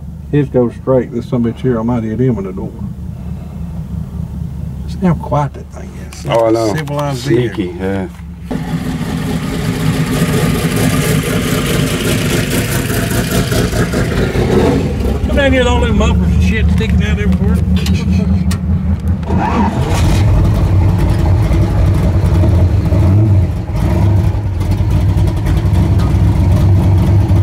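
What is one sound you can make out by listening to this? A truck engine rumbles steadily close by, growing louder as it drives on.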